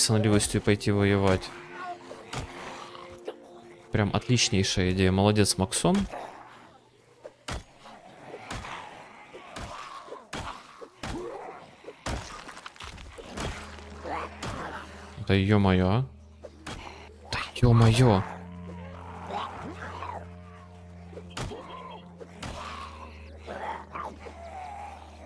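Heavy blows thud repeatedly against bodies.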